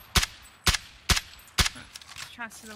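Rifle shots crack in a video game.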